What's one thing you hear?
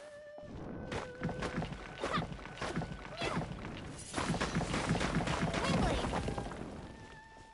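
A sword swishes and strikes against rock.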